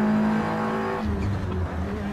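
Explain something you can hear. A race car engine's pitch drops sharply as it shifts down a gear.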